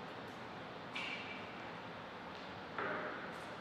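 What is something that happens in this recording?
A table tennis ball clicks sharply off a paddle a few times.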